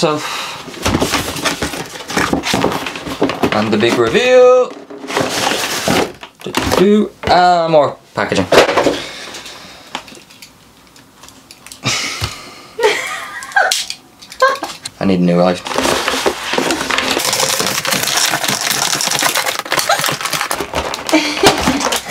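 Cardboard packaging rustles and scrapes.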